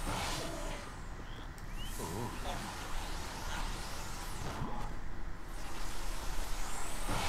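Television static hisses and crackles.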